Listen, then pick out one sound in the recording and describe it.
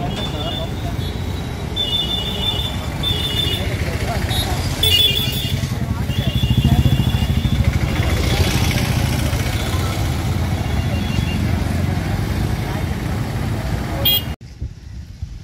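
Traffic rumbles steadily on a busy street outdoors.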